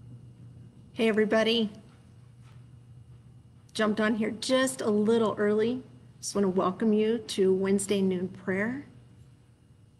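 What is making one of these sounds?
A middle-aged woman speaks warmly over an online call.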